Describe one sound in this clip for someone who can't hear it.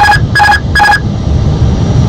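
A cockpit warning chime beeps three times quickly.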